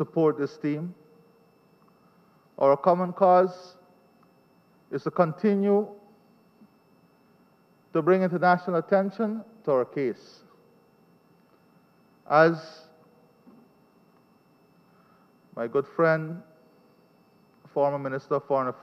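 A man speaks calmly into a microphone in a large echoing hall, with pauses between phrases.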